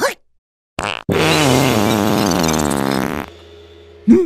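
A cartoon worm screams loudly.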